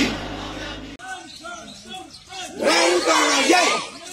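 A crowd of marchers chants slogans loudly outdoors.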